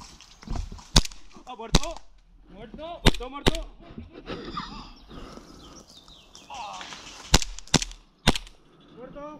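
An airsoft pistol fires several sharp shots.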